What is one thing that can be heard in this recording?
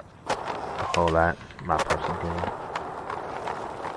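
A skateboard lands with a clack.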